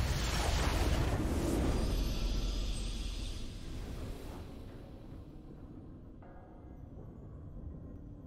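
A triumphant victory fanfare swells and then fades away.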